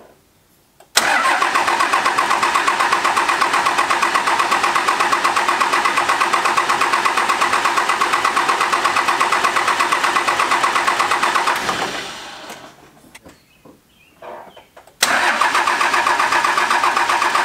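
A diesel engine idles with a steady, rapid chugging.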